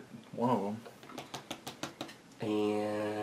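Playing cards tap softly as they are laid down on a table.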